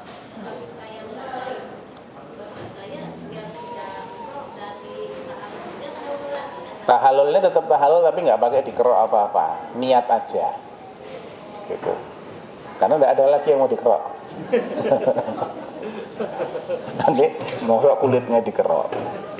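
A man speaks calmly into a headset microphone, heard through a loudspeaker in a room.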